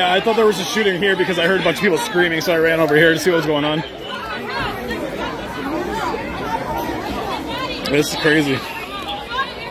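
A crowd chatters and shouts outdoors.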